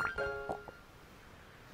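A bright chiming jingle plays.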